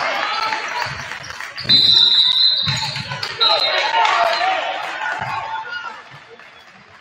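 A crowd cheers loudly in a large echoing gym.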